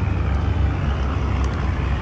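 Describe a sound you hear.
A plastic lid snaps onto a cup.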